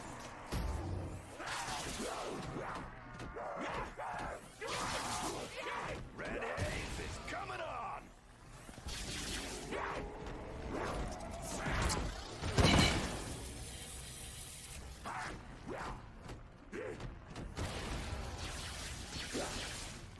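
Monsters snarl and growl close by.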